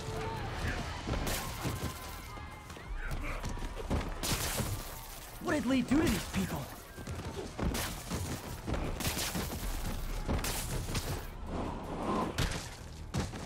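Punches and blows land in quick bursts of fighting.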